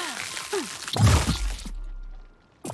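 A bright game chime rings as items are picked up.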